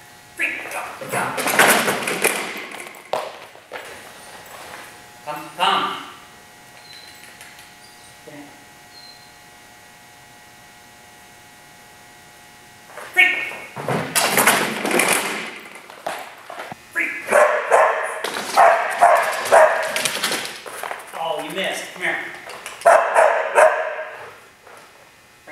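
A man calls out excitedly in a large echoing hall.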